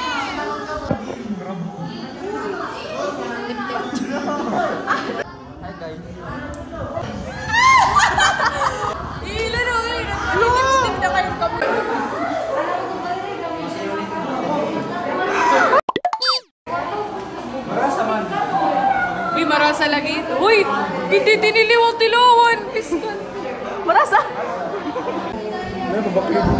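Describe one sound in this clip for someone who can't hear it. Young men and women chat and laugh close by.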